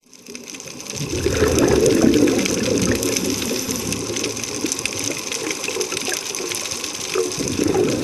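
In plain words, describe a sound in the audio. Air bubbles gurgle and rumble from divers' breathing gear underwater.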